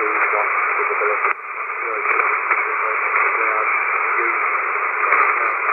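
A shortwave radio hisses with steady, crackling static through a small loudspeaker.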